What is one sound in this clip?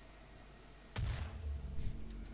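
A gun fires a single loud blast.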